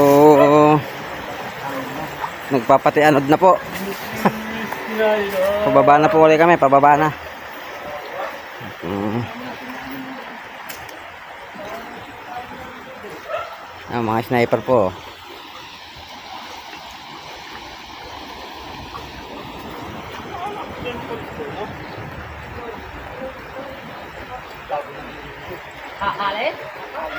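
Men call out and talk loudly outdoors.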